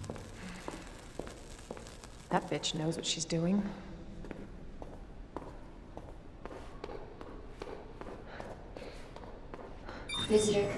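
Footsteps tap on a hard floor at a steady walking pace.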